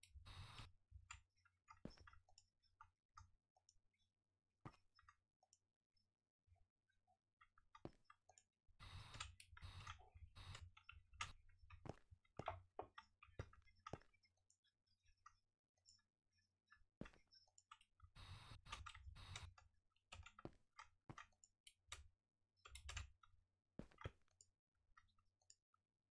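Stone blocks break with short crunching clicks.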